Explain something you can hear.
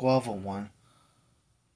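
A man speaks a few loud words close by.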